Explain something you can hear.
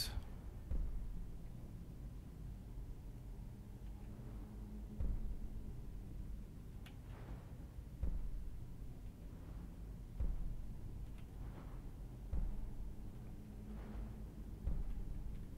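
Deep, rumbling whooshes swell every two or three seconds and slowly die away.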